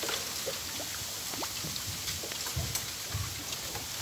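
A fishing reel clicks and whirs as line is wound in.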